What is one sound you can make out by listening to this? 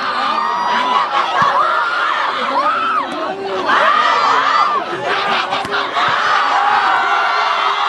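A volleyball is slapped hard by hand.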